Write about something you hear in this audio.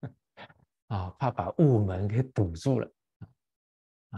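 An elderly man laughs.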